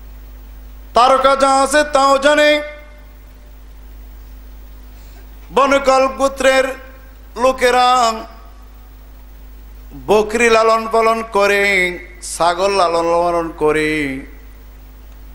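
A middle-aged man chants in a melodic voice through a microphone and loudspeakers, in phrases with pauses between them.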